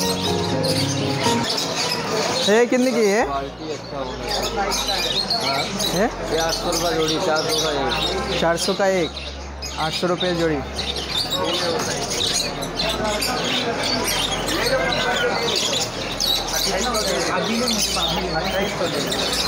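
Many small caged birds chirp and squawk busily nearby.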